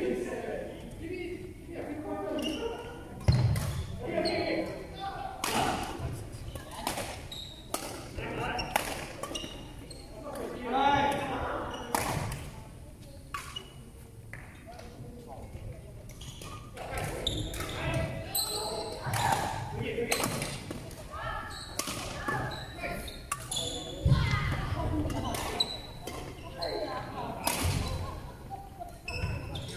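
Men talk and call out to each other across the hall.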